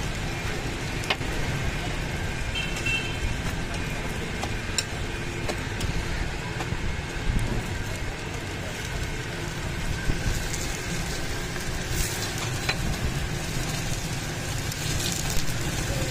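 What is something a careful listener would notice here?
A metal spatula scrapes and taps against a griddle.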